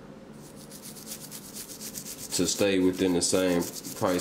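A toothbrush scrubs rapidly against a small metal piece.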